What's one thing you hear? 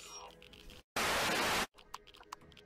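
A brief burst of static hisses loudly.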